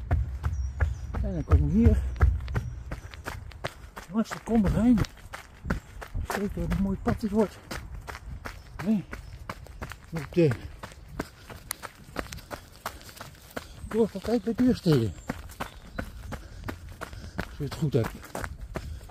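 An elderly man talks calmly, close to the microphone.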